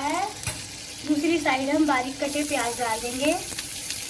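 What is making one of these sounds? Chopped onions drop into a sizzling pan.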